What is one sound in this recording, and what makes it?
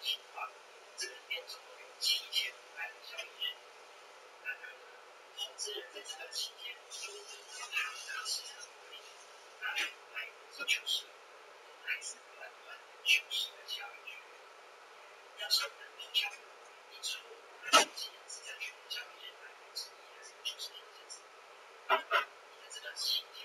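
Small fans whir steadily close by.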